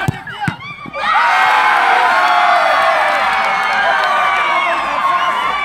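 A crowd of spectators erupts in loud cheering.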